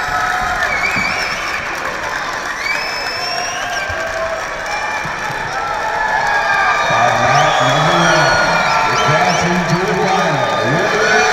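A large crowd murmurs and shouts in a big echoing arena.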